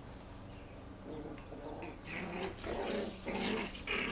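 Puppies scuffle and scrabble on wooden boards.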